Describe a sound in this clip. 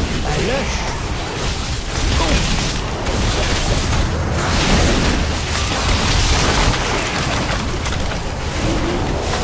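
Spell effects crackle and boom in a busy fight.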